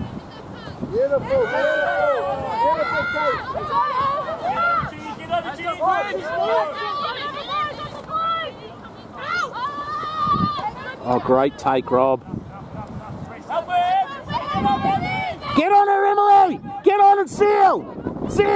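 Young women shout calls to each other across an open field.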